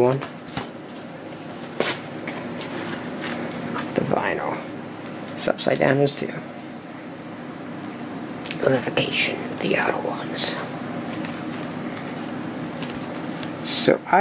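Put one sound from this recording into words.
A record sleeve slides and scrapes against cardboard.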